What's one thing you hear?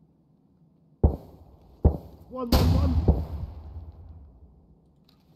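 A rifle fires a few loud shots that echo away.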